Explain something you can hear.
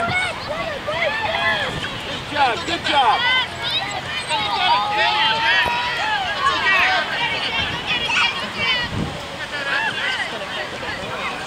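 A crowd of adults and children shouts and cheers outdoors.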